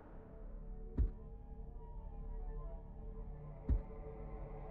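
A short menu click sounds as a selection changes.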